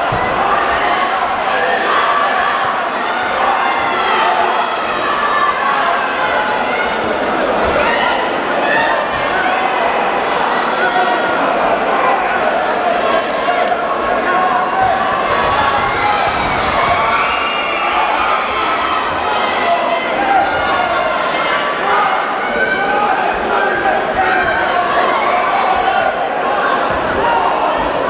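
A crowd shouts and cheers in a large echoing hall.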